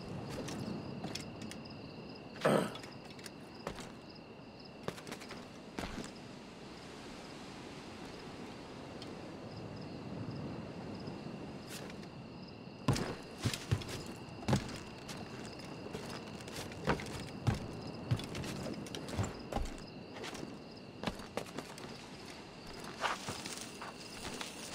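Hands scrape and grip on rough stone while climbing.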